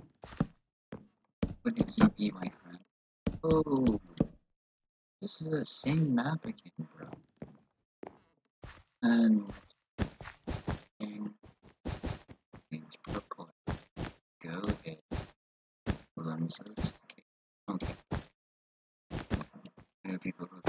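Blocks are placed with quick, short knocks.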